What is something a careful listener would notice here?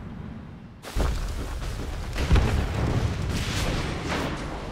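Magic blasts and weapon blows clash loudly in a fight.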